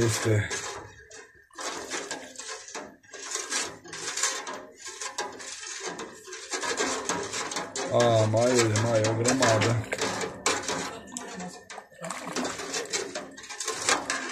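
A ladle stirs and swishes through water in a metal pot.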